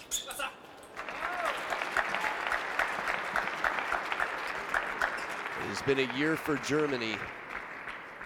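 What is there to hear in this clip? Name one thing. A crowd applauds in a large hall.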